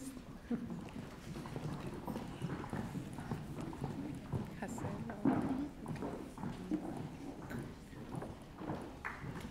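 A woman speaks calmly through a loudspeaker in a large hall.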